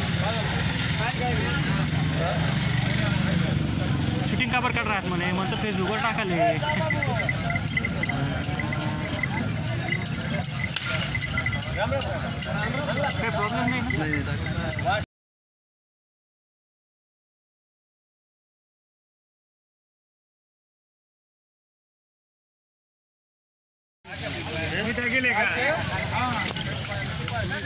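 A crowd of men talks outdoors.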